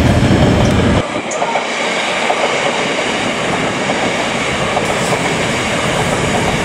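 A passenger train rolls past, its wheels clattering on the rails.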